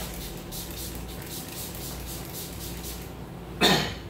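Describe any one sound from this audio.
A spray bottle hisses in short bursts, misting hair.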